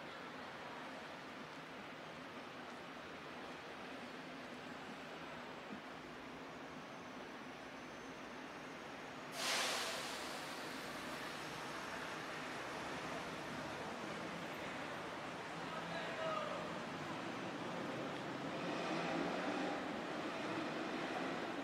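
Outdoors, a steady murmur of city traffic hums in the distance.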